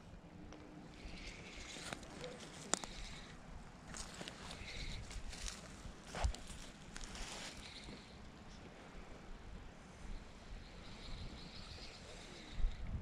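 A fishing reel whirs and clicks as its handle is cranked.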